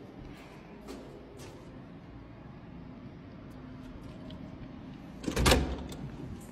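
A door latch clicks and a door swings open.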